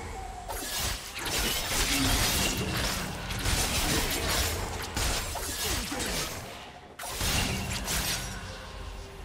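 Fantasy spells whoosh and crackle in a busy video game battle.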